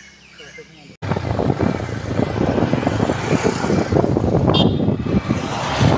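A motorbike engine hums on the road.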